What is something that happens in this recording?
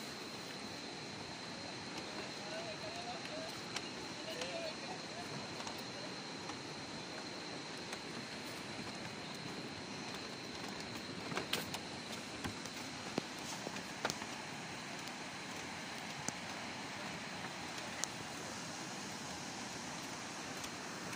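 A river rushes steadily over rocks below.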